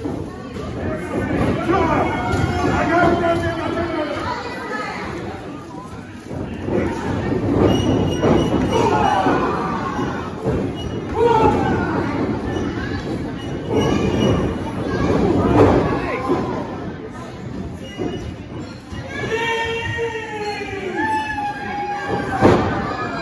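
A crowd of men and women shouts and cheers loudly in a large echoing hall.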